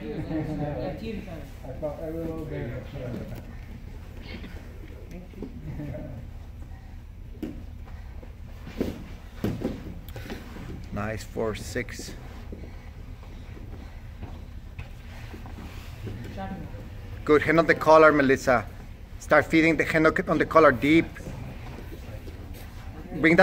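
Bodies shuffle and thump on a padded mat.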